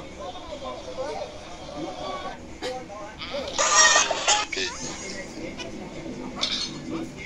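A tablet game plays cartoonish sound effects through a small speaker.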